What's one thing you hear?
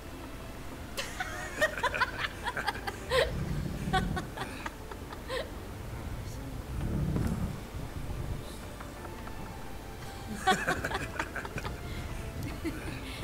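A man talks and laughs with animation.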